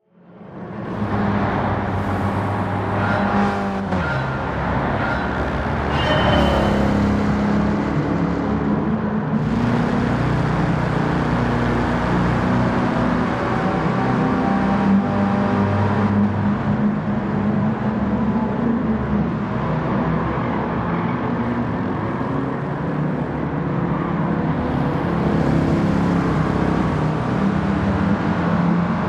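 A car engine rumbles and roars steadily.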